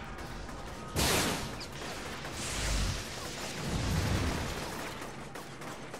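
Gunfire and explosions boom in a video game.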